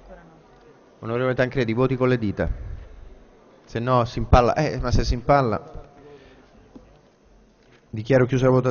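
A man speaks steadily through a microphone, with pauses between phrases.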